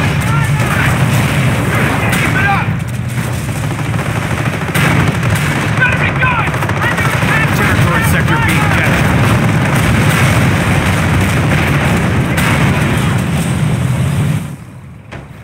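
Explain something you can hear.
Guns fire in sharp bursts.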